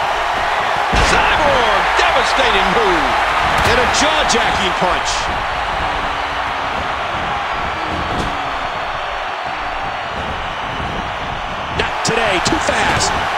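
Bodies slam hard onto a wrestling ring mat with thuds.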